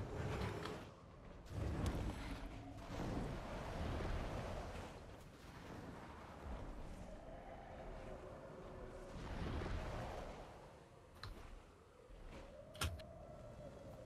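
Wind rushes loudly, rising and falling.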